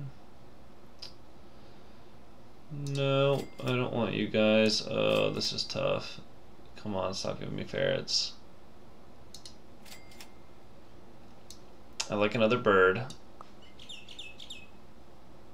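Short game clicks and chimes sound now and then.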